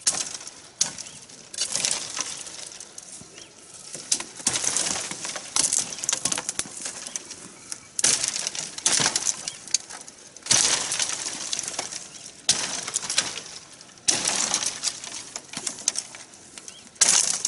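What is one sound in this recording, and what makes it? Dry branches rustle and snap as a person pushes through them.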